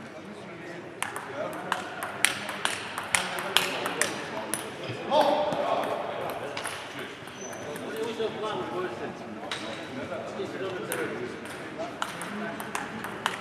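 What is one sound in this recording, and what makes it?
A ping-pong ball clicks sharply on paddles and a table in a large echoing hall.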